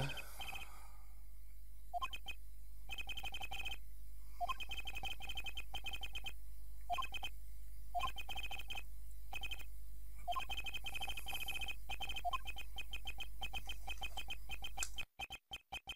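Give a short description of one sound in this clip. Rapid electronic blips chirp in quick bursts, with short pauses between them.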